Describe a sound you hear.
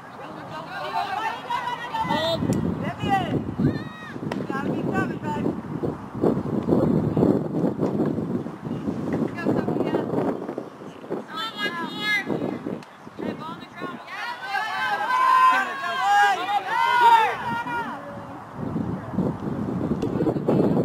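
Adults talk and chatter nearby outdoors.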